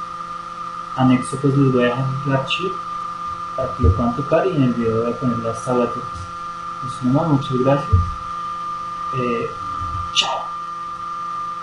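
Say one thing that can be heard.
A young man sings softly close by.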